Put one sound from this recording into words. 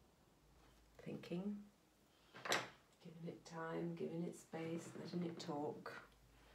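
A woman speaks calmly, close by.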